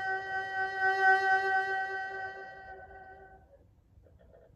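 A bowed string instrument plays a sustained note that rings out and fades.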